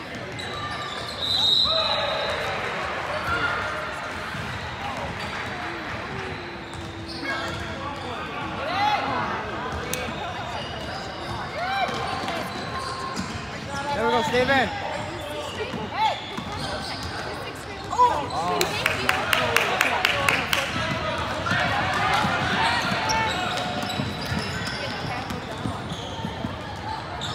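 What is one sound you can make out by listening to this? Young players and spectators shout and call out in a large echoing hall.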